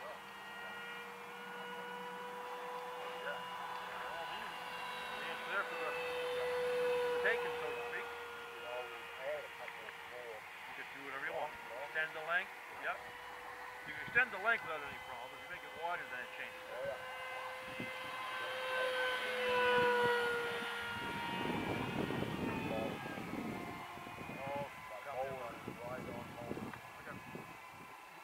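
A small model airplane engine drones steadily overhead, its pitch shifting as it flies past.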